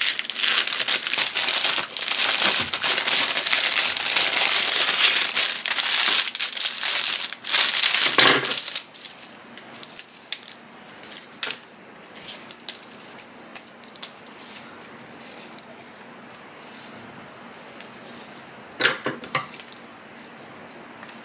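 Scissors snip through flower stems.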